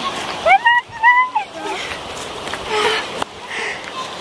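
Young girls shout and squeal outdoors.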